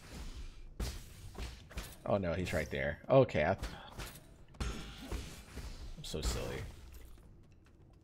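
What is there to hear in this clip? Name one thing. Game sound effects clash and clank.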